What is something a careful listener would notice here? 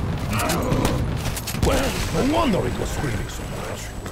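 A zombie bursts in a fiery explosion.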